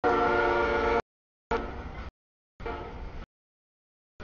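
A diesel locomotive passes.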